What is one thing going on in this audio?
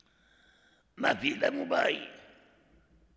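An elderly man speaks calmly into a microphone, in a reverberant hall.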